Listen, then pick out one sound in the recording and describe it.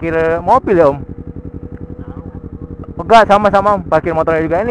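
A twin-cylinder sport motorcycle idles.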